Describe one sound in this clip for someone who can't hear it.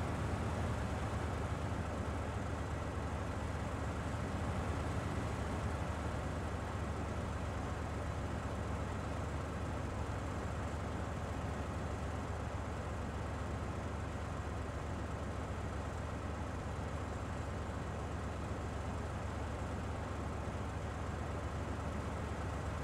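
A heavy truck engine rumbles steadily while grinding slowly through mud.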